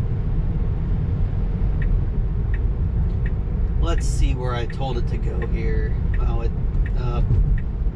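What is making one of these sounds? A car drives along a road with a steady low rumble of tyres.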